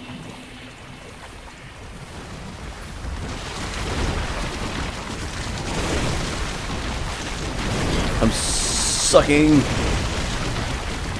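A heavy weapon swings and strikes with loud thuds.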